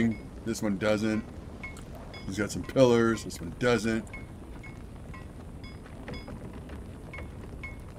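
A forge fire crackles and roars softly.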